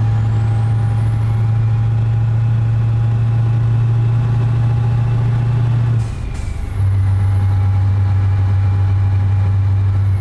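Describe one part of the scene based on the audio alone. A truck engine drones steadily, dipping briefly as the gears change.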